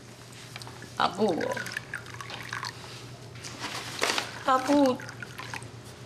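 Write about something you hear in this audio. An older woman answers quietly.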